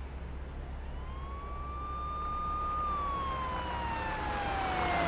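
A siren wails and slowly falls in pitch.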